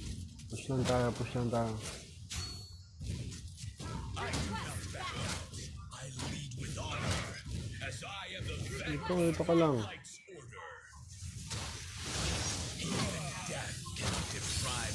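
Game sound effects of fighting clash and whoosh.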